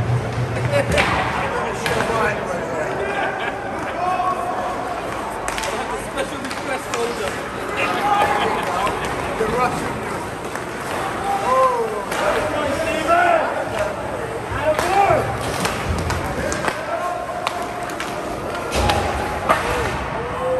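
Hockey sticks clack against a puck now and then.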